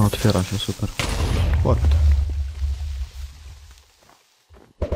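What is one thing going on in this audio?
An explosion booms and rumbles loudly, then fades.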